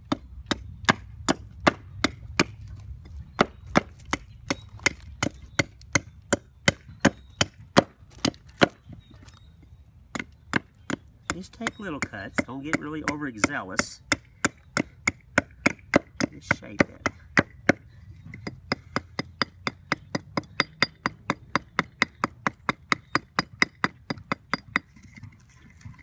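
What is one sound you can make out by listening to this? A small hatchet chops and shaves wood with quick, rhythmic taps.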